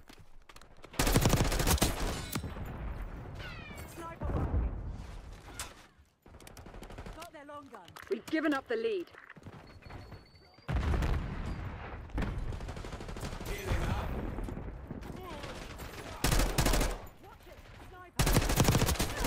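Gunfire from a video game bursts in loud rapid volleys.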